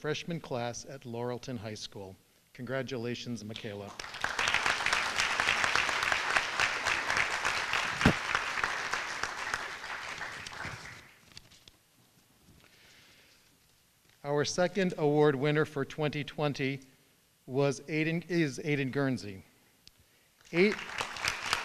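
A man speaks calmly into a microphone over loudspeakers in a large hall.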